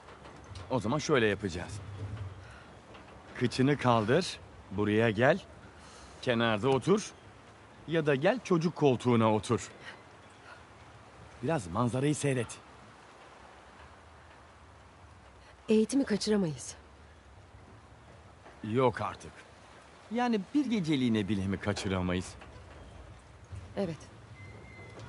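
A man speaks calmly and casually nearby.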